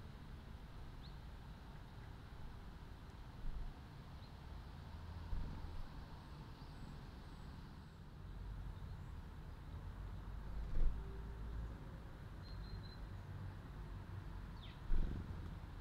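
Small birds chirp faintly now and then.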